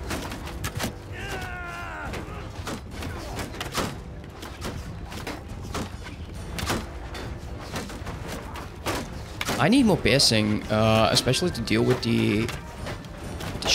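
Weapons clash and thud in a noisy battle.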